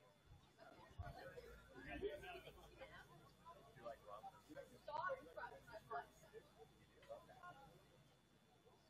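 Young people talk and call out together at a distance, outdoors.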